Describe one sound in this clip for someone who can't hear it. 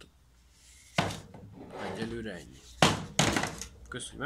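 A power tool knocks against a hard plastic case.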